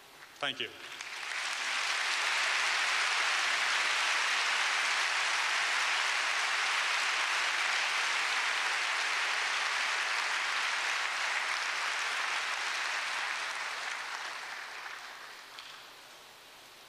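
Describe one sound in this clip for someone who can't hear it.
A large crowd applauds loudly and then fades.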